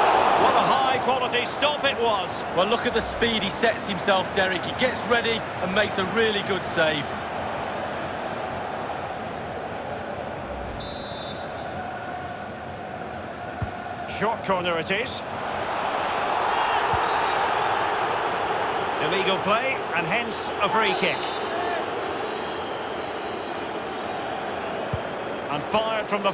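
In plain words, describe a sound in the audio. A large stadium crowd roars and chants steadily, swelling louder at times.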